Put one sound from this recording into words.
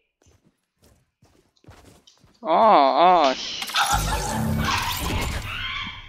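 A pickaxe swings and thuds in a video game.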